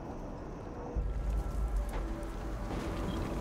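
Thunder rumbles low and deep.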